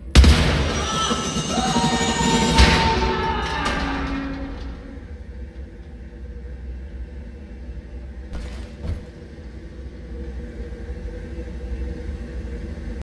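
A heavy lift rumbles and whirs, loud at first, then settling into a low steady hum.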